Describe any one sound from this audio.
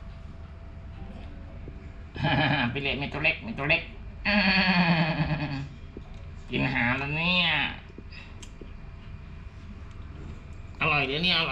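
A kitten crunches dry food from a bowl.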